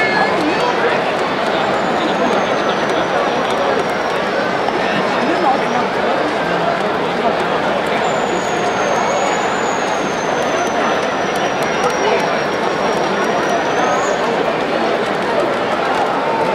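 A large crowd murmurs and chatters throughout a stadium.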